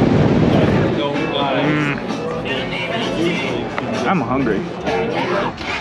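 A man talks loudly over background chatter.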